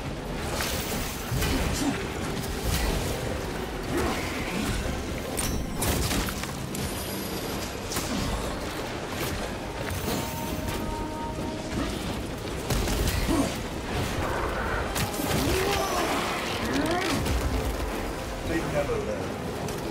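Monsters screech and shriek.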